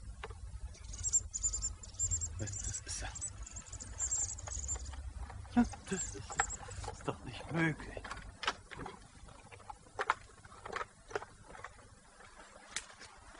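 A middle-aged man talks animatedly outdoors nearby.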